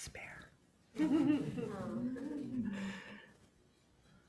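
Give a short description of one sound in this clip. An older woman laughs softly.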